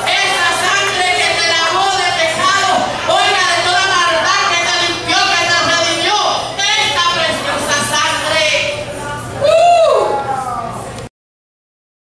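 A woman sings with feeling through a microphone and loudspeakers.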